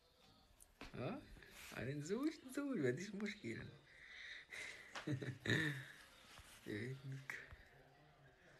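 A young man laughs close to a phone microphone.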